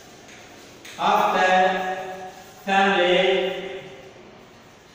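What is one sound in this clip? A man speaks loudly and clearly, as if teaching.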